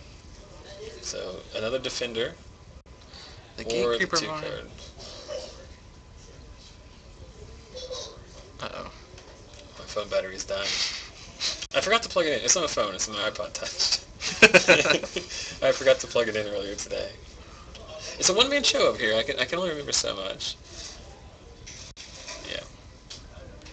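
A young man talks casually nearby.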